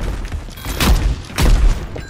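An explosion booms close by.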